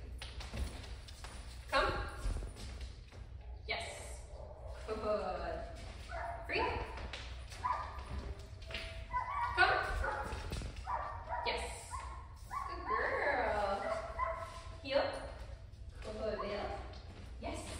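Footsteps thud softly on a hard floor.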